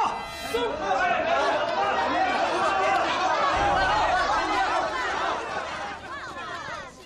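A crowd of people murmurs and chatters loudly.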